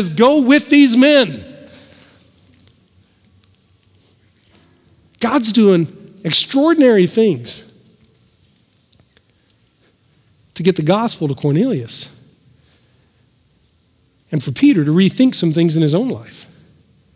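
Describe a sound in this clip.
A middle-aged man speaks with animation through a headset microphone in bursts, with pauses between.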